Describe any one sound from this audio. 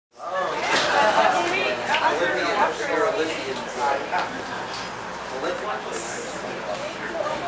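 Several people chatter in a room with a light echo.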